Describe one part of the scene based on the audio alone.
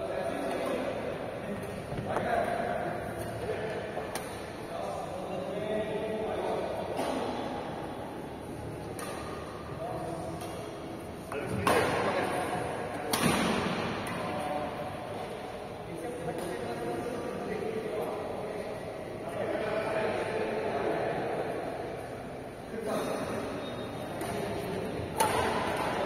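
Rackets strike a shuttlecock back and forth, with sharp pops echoing in a large hall.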